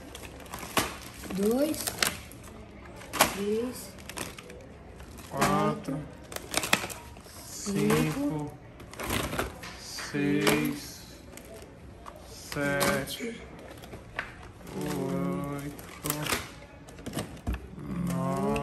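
Small cardboard boxes clatter as they drop into a bag.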